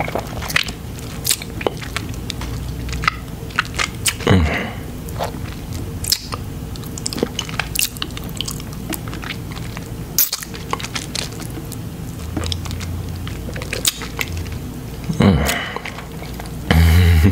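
A man makes wet lip and mouth sounds up close.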